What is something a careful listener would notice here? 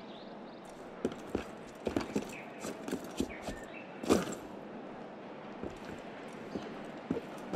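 Footsteps thud on roof tiles as a runner climbs and runs.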